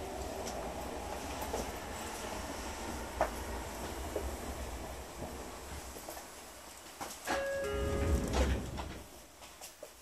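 People murmur and shuffle along a busy platform.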